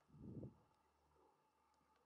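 A golf club chips a ball with a soft click.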